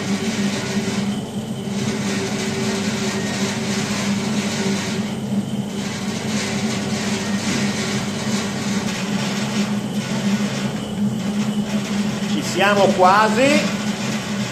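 A stand mixer's motor hums steadily as its hook churns dough in a metal bowl.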